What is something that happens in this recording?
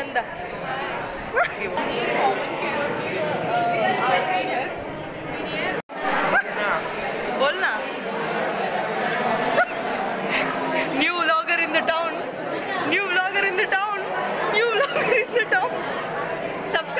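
Young people chatter and laugh nearby.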